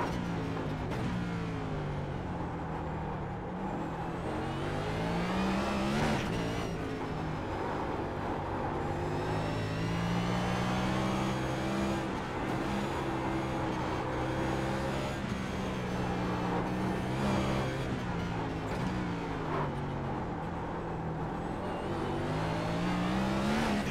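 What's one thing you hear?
A race car engine roars, its pitch rising and falling as it speeds up and brakes through the corners.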